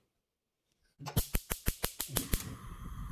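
A gas stove igniter clicks rapidly.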